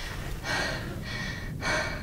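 A young girl gasps softly nearby.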